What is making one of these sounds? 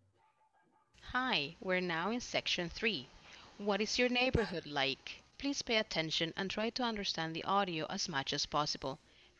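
A woman speaks clearly through a loudspeaker.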